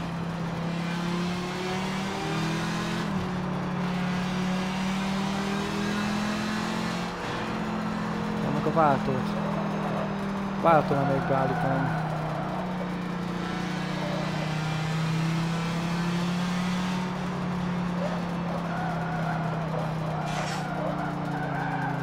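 A racing car engine drones steadily, rising and falling in pitch through gear changes.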